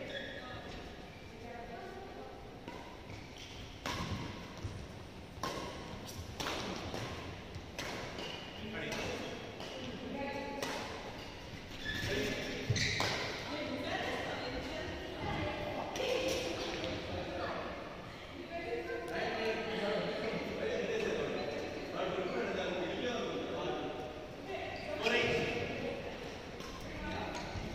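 Voices of men and women chatter and call out in a large echoing hall.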